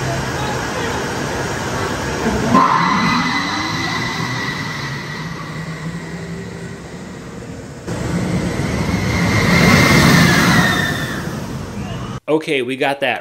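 A roller coaster's cars clatter and rumble along the track.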